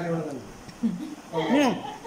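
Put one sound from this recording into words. An elderly woman laughs.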